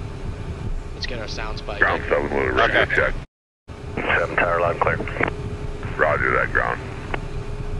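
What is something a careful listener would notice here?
A man speaks calmly through a headset intercom.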